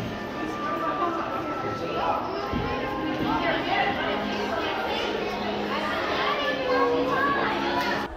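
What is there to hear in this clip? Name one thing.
A crowd of people chatter, echoing under a stone archway.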